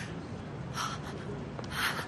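A young woman speaks anxiously.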